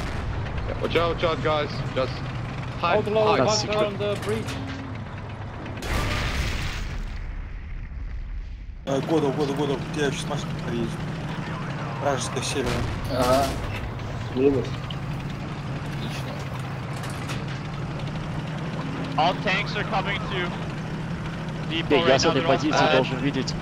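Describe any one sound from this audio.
A tank engine rumbles with a steady low drone.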